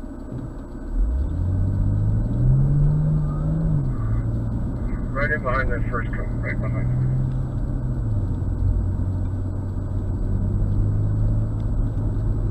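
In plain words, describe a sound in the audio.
A car engine revs hard as the car speeds up, rising and falling in pitch.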